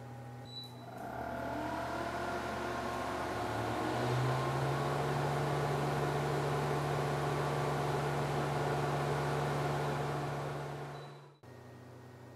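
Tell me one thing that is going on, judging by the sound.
A laser engraver whirs and hums steadily as it works.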